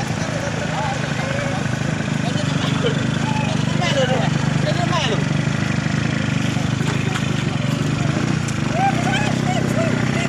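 Several men talk loudly over one another outdoors.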